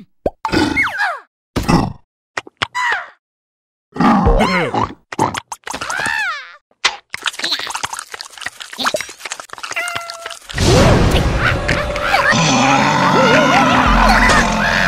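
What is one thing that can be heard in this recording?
Cartoon creatures chatter and squeal in high, silly voices.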